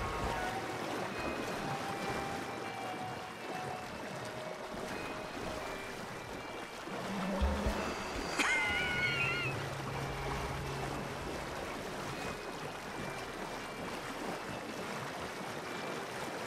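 A horse wades and splashes through water.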